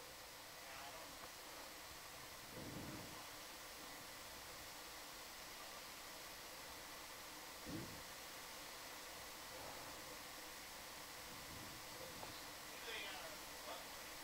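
Open water hisses steadily all around, heard underwater.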